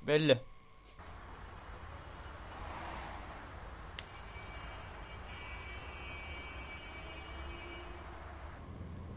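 A car engine rumbles low and steady amid traffic noise.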